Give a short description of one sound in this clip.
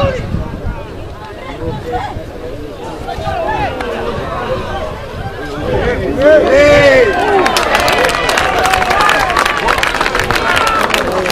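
A crowd of spectators shouts and cheers outdoors, growing louder.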